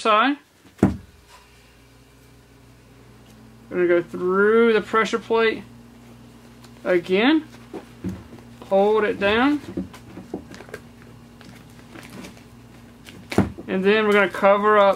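Gauze rustles softly as hands pack and wrap it around a leg.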